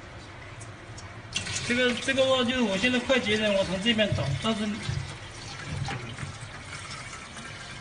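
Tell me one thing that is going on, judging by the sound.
Water pours and splashes into a drain.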